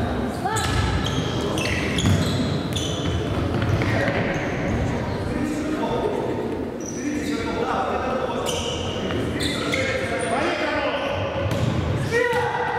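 Sneakers squeak sharply on a wooden floor in an echoing hall.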